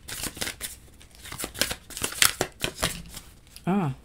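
A playing card is lifted and slides against other cards.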